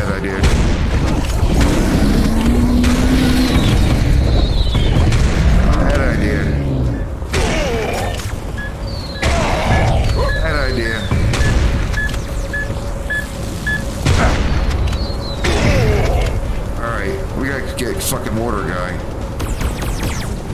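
Monsters growl and roar.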